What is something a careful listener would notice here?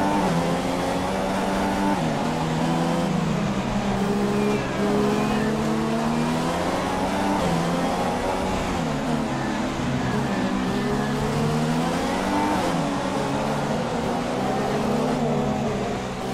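A racing car engine roars at high revs, rising and falling in pitch as it shifts gears and slows into corners.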